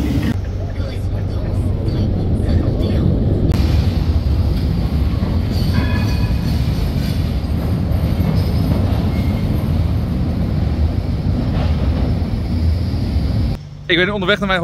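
A tram rumbles steadily along on rails.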